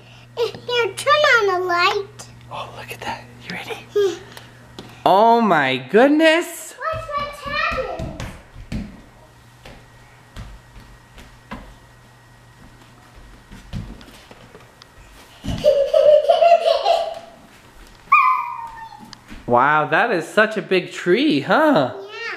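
A young child talks and squeals excitedly close by.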